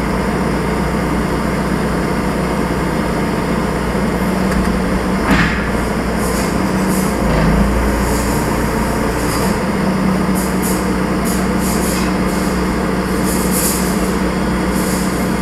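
A heavy machine's diesel engine hums steadily up close.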